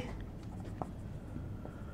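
A marker scratches on a whiteboard.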